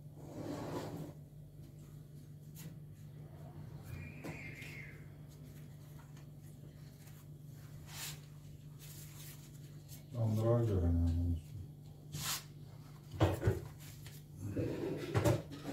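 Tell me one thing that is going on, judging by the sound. Thin flatbread rustles softly as hands fold it.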